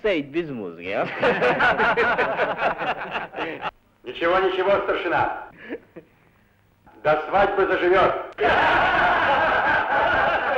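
A group of men laughs heartily.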